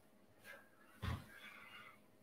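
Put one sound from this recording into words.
A body thumps softly on a floor mat.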